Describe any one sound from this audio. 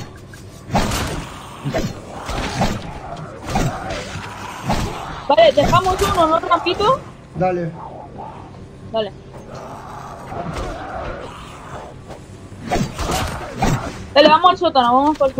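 Zombies growl and snarl close by.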